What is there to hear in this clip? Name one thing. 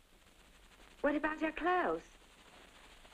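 A second young woman answers tensely.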